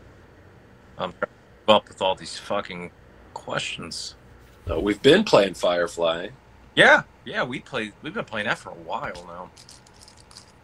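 A second man speaks with animation over an online call.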